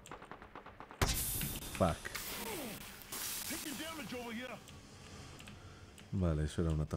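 A smoke canister bursts with a loud hissing rush.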